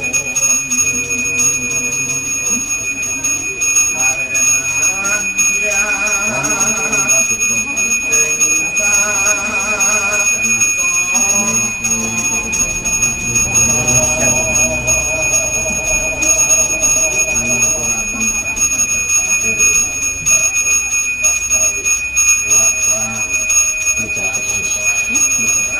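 An elderly man chants in a long, wavering voice.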